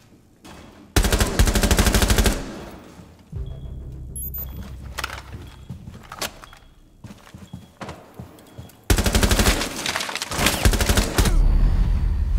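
Rapid gunfire bursts loudly in several volleys.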